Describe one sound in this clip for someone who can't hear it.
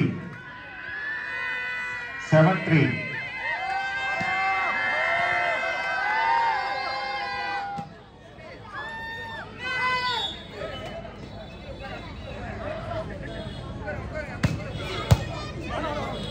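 A crowd of men cheers and shouts in the distance outdoors.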